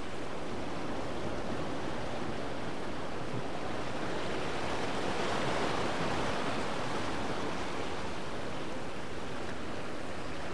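Water swirls and rushes against rocks, swelling louder midway.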